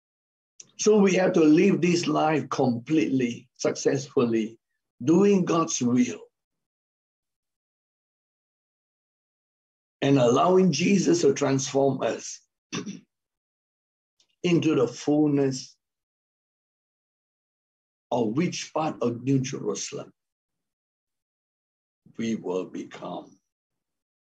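A middle-aged man speaks calmly in bursts with pauses, heard over an online call.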